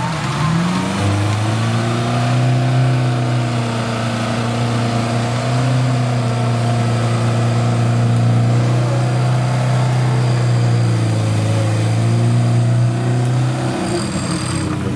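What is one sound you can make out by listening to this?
A car engine labours loudly as the car crawls through mud.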